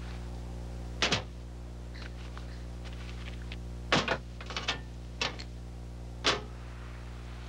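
Metal parts clink together.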